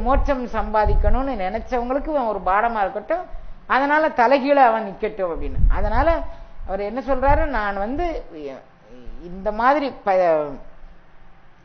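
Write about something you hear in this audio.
An elderly woman speaks calmly and expressively into a close microphone.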